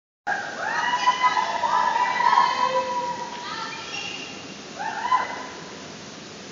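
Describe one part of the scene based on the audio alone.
Young women call out and cheer in a large echoing hall.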